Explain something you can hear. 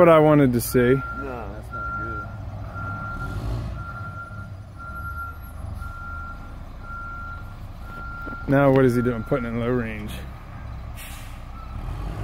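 A diesel concrete mixer truck's engine rumbles.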